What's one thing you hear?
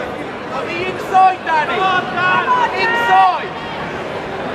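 A man shouts instructions to a boxer.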